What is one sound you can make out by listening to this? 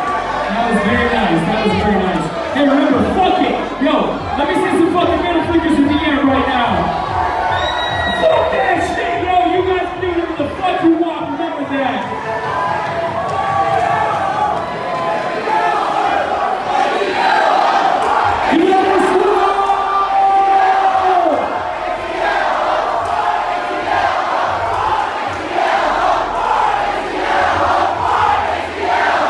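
Loud dance music plays through big speakers in a large echoing hall.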